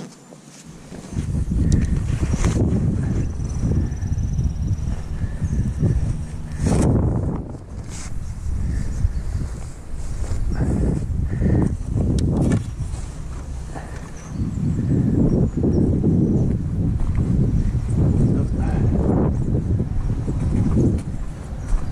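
Wind blusters loudly across the microphone outdoors.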